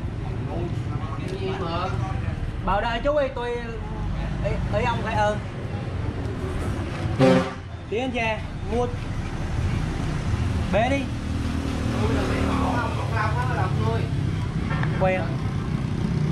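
A spoon scrapes and squelches through wet meat in a plastic tub.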